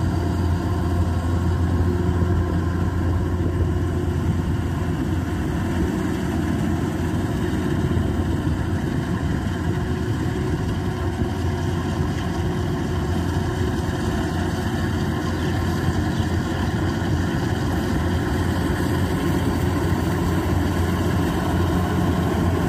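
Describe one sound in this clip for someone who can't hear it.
A combine harvester engine drones steadily nearby, growing closer.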